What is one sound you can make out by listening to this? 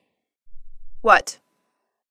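A young girl asks a short question in surprise.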